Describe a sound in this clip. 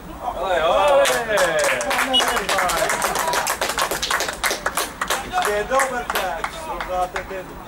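A young man claps his hands.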